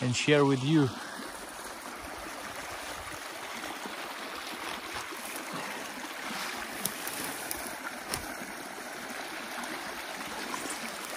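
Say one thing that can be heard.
Water rushes and gurgles through a gap in a small dam of sticks.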